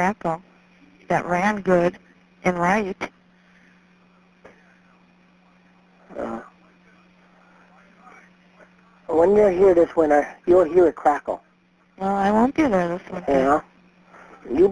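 A woman speaks with animation over a phone line.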